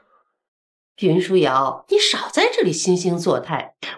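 A woman speaks sharply.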